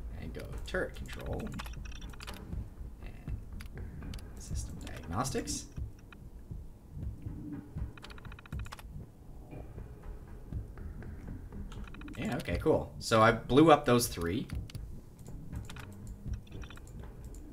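A computer terminal clicks and chirps as text scrolls onto it.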